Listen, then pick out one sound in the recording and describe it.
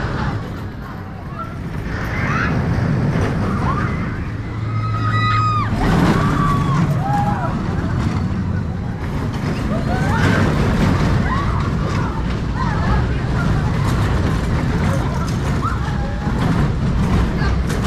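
A roller coaster train rumbles and clatters along its track.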